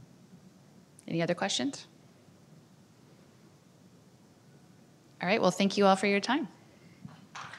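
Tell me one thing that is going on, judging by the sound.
A woman speaks into a microphone in a large hall, pausing between phrases.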